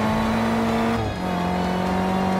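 A car engine drops in pitch briefly as the gear shifts, then climbs again.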